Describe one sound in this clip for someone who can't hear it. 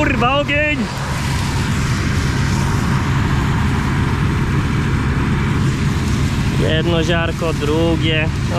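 Dry straw rustles and crackles as hands dig through it.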